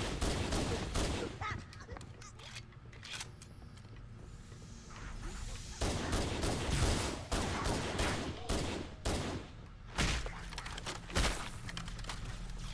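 Plasma blasts whoosh and crackle.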